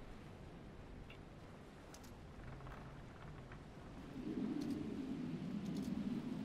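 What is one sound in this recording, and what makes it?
Wind blows steadily over open sea.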